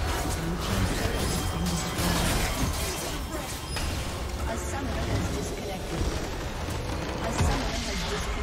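Game battle effects clash and blast loudly.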